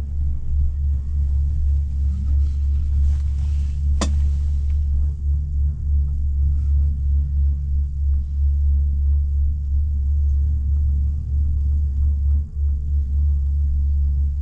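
A gondola cabin hums and rumbles steadily as it rides along the cable.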